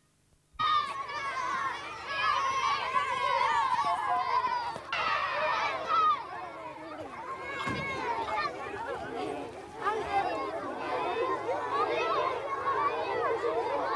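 A crowd of children shout and chatter excitedly outdoors.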